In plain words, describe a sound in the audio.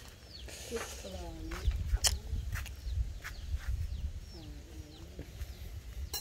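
Chickens cluck nearby outdoors.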